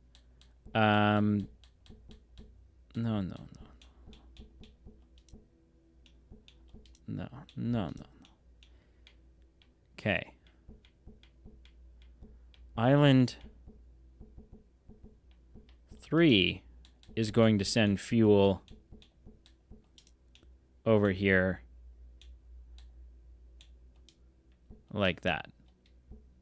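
Short gliding electronic chimes sound now and then as menu buttons are clicked.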